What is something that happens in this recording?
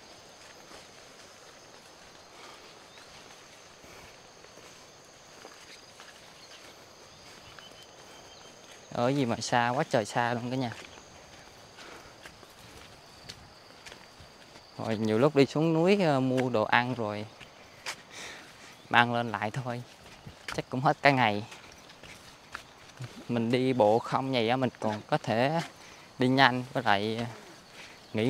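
Footsteps crunch along a dirt path through brush.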